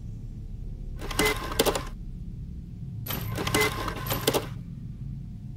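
A fax machine whirs and buzzes as it prints out a page.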